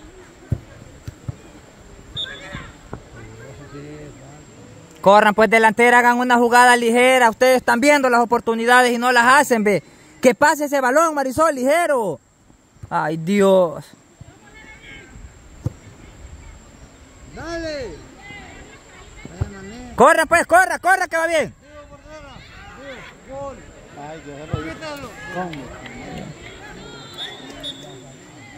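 Girls call out to each other in the distance outdoors.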